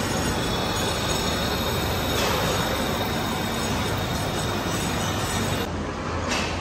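A cutting tool scrapes steadily along a spinning steel roll.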